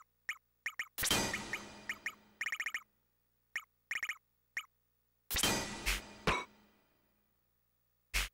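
A bright electronic chime rings out and fades away.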